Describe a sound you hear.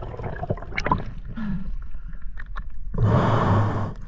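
Water sloshes and splashes at the surface.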